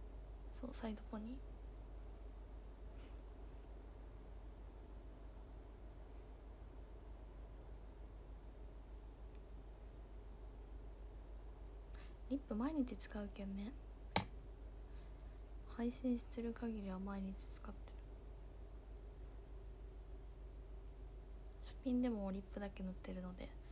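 A young woman speaks softly and briefly, close to a microphone.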